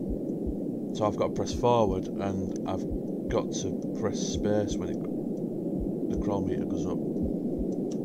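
A man speaks into a microphone in a low, tense voice.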